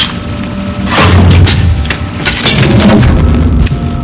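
A heavy mechanism rumbles and grinds open.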